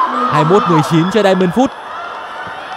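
Young women shout and cheer together in celebration.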